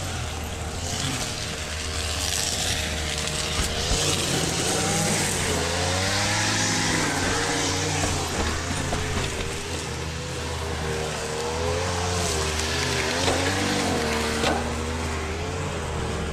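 Wind rushes loudly past a fast-moving rider outdoors.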